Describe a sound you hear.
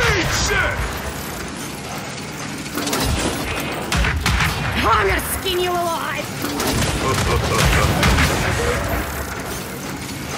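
A laser weapon fires with a sizzling hum.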